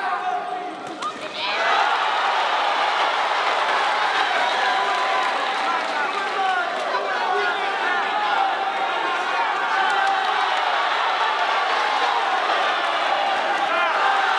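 Boxing gloves thud against bodies.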